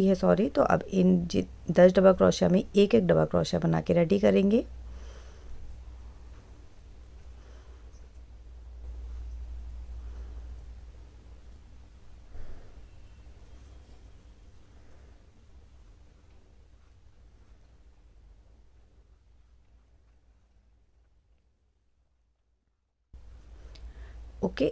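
A crochet hook softly rustles through yarn.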